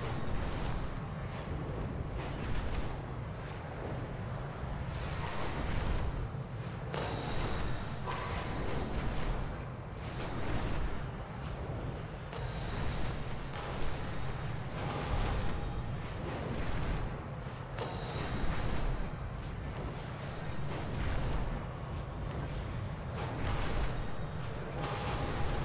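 Wind rushes steadily past a fast flying rider, swelling and fading.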